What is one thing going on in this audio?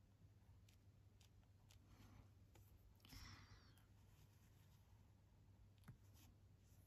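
A pencil scratches softly on paper in short strokes.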